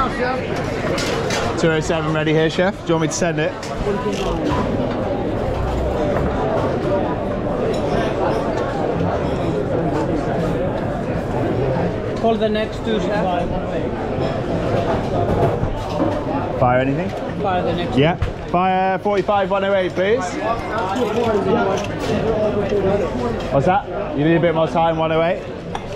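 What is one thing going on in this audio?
A busy crowd murmurs and chatters all around.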